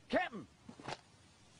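A man calls out briefly.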